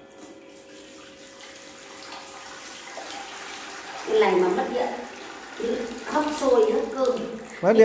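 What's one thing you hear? Water pours into a metal pot.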